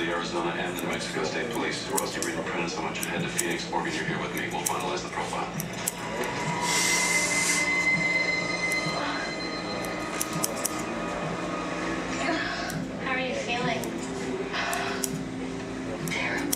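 Scissors snip through hair with quick metallic clicks.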